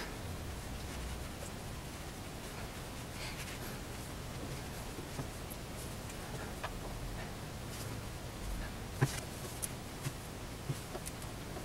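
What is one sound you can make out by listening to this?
Fingers press and smooth soft clay with faint rubbing sounds.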